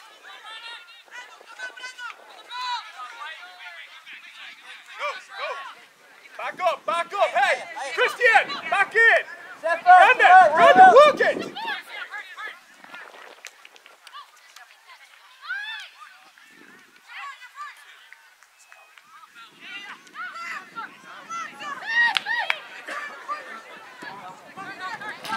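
Young players shout and call out to each other outdoors on an open field.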